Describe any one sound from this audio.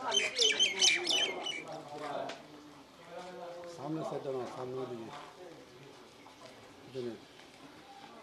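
Several men talk with one another nearby, outdoors.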